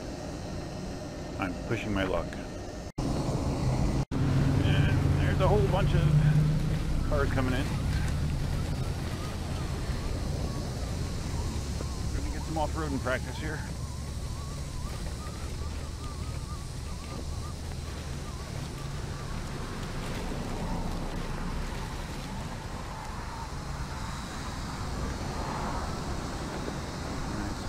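Wind buffets the microphone outdoors.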